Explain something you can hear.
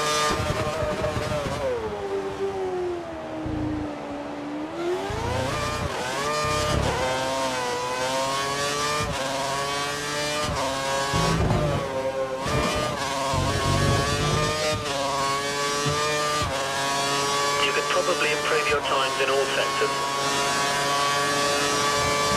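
A racing car engine whines loudly, its pitch dropping on braking and rising as it speeds up through the gears.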